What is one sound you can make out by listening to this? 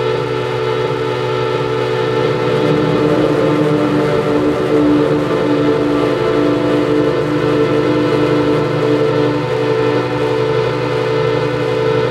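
A steady electronic drone plays through loudspeakers in a room with a pulsing, wavering tone.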